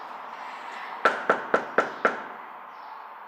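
A fist knocks five times on a door.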